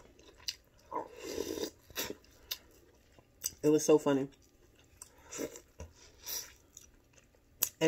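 A woman chews and crunches corn on the cob.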